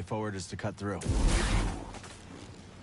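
A lightsaber swings with a loud buzzing whoosh.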